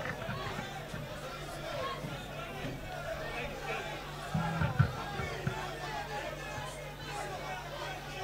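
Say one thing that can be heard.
A crowd of men cheers and sings along loudly.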